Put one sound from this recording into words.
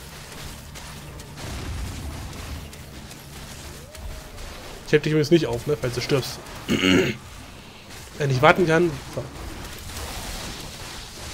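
Magical blasts whoosh and crackle in a fantasy battle.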